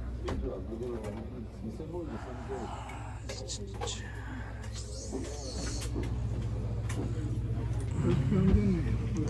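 Adults chat quietly nearby.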